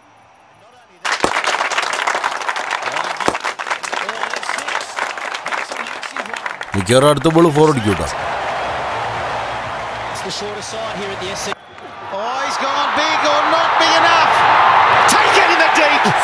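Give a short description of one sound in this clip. A large crowd cheers and claps.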